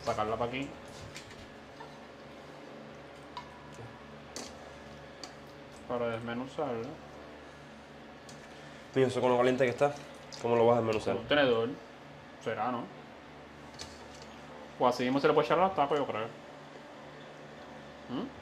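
A metal spoon scrapes and clinks against a cooking pot.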